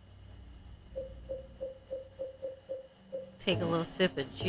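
Menu beeps tick quickly.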